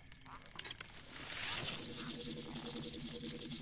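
A magical shot bursts with a bright whooshing shimmer.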